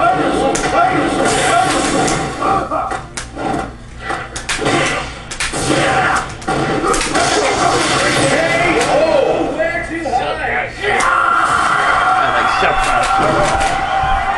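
Punches and hits from a fighting video game land through a television speaker.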